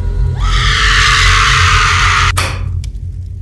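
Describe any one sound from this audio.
A fire roars loudly.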